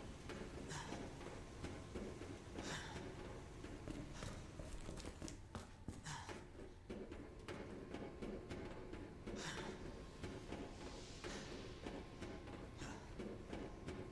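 Footsteps thud on hard floors and stairs.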